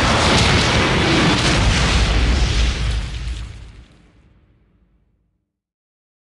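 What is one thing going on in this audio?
A loud, rumbling explosion bursts and slowly fades away.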